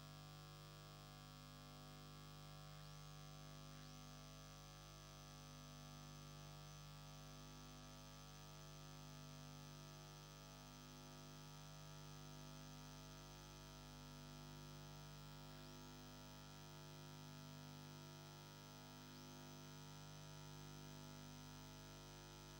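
A synthesizer keyboard plays a steady, softly pulsing tune.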